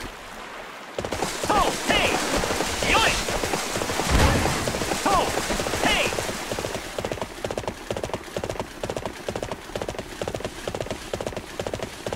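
Horse hooves gallop steadily over the ground.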